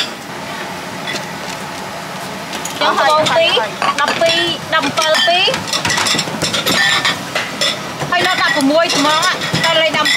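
A spoon scrapes and clinks against a ceramic bowl.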